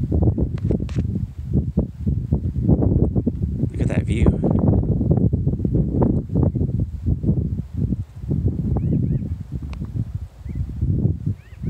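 Strong wind gusts and buffets outdoors.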